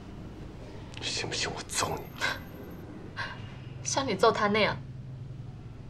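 A young woman speaks nearby, tearful and then sharply accusing.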